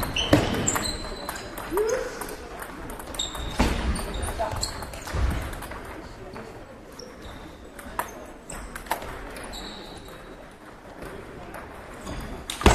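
Ping-pong balls click on tables and paddles, echoing through a large hall.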